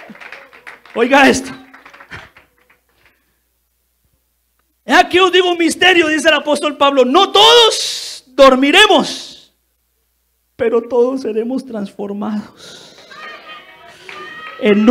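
A man preaches with passion through a microphone.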